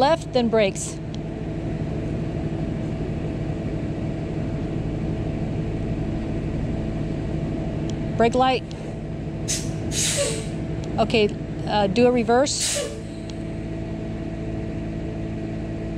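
A large diesel engine idles with a steady low rumble.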